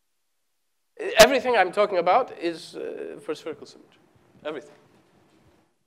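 A woman lectures with animation in a large echoing hall.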